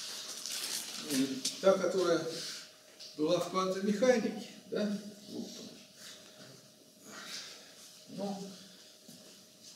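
An elderly man lectures with animation in a room with a slight echo.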